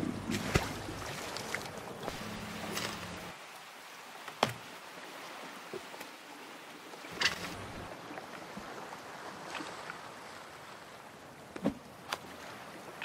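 Water washes softly against rocks.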